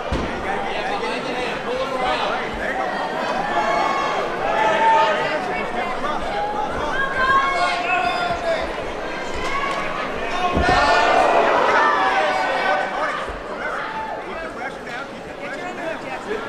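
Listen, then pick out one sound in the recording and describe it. A crowd of spectators shouts and cheers loudly throughout.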